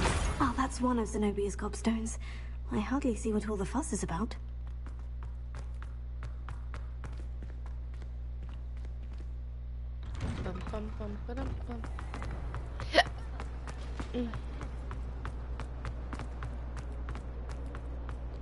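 Footsteps tap on stone floors.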